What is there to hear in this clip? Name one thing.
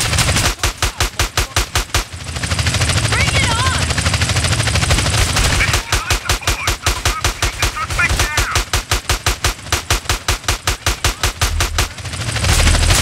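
Rapid bursts of gunfire rattle.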